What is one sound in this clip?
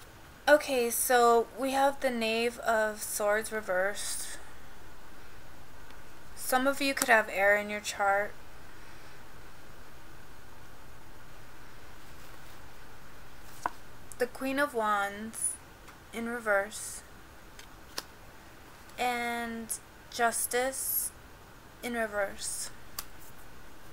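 A woman speaks calmly and clearly into a nearby microphone, in short bursts with pauses.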